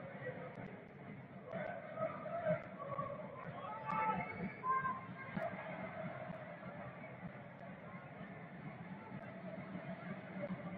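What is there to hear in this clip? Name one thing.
A crowd murmurs and calls out in a large open stadium.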